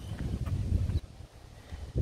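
A man's footsteps swish softly on grass.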